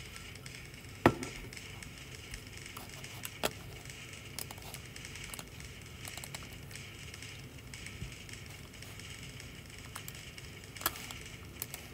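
Fireworks burst with sharp pops and crackles.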